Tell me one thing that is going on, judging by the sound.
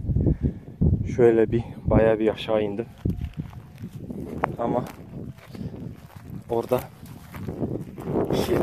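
Footsteps swish through dry grass close by.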